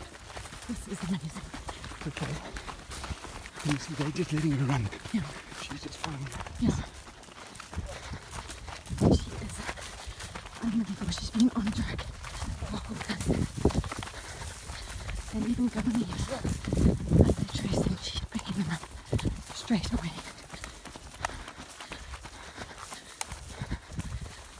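Footsteps crunch on dry grass and earth.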